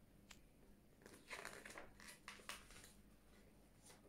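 A book's pages rustle and flap close by.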